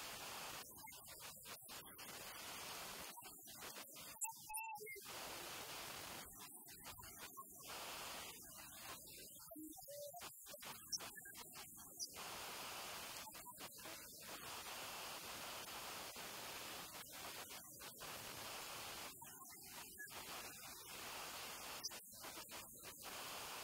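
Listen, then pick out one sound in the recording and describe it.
A young girl sobs and wails close by.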